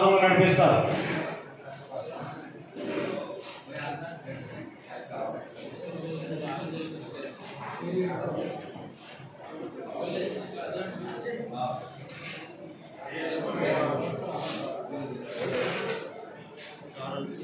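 Men talk nearby in low voices.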